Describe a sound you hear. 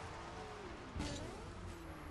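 A car lands with a sharp thud.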